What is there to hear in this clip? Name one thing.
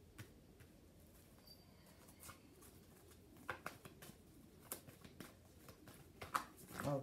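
Cards shuffle and tap softly in someone's hands.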